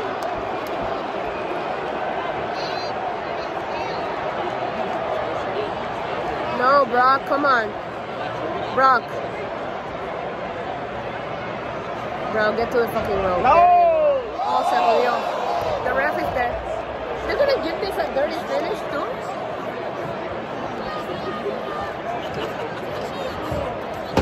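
A large crowd sings and cheers in a big echoing arena.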